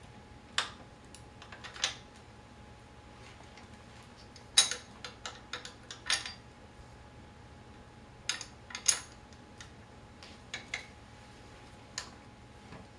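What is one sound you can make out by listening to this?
Metal parts of a wheelchair click and clink as a tool works on them.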